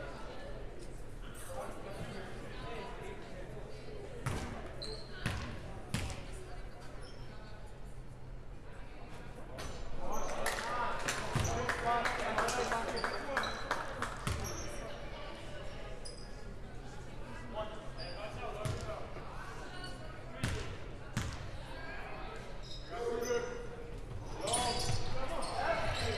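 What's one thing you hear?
Spectators chatter and cheer.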